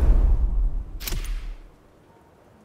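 A game menu opens with a short whoosh.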